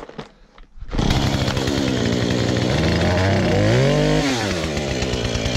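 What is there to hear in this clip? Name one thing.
A chainsaw engine starts with a roar and runs loudly, revving up and down.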